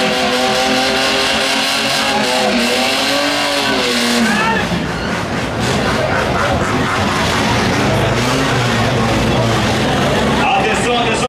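Tyres screech and squeal as they spin on the track.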